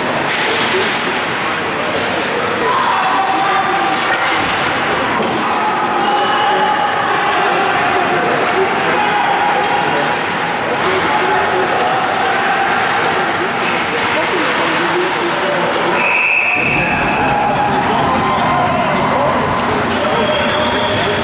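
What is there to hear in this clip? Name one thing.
Skates scrape and hiss across the ice.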